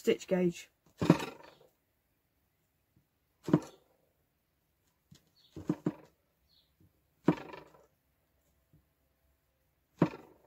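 A metal tool knocks sharply against leather on a wooden board.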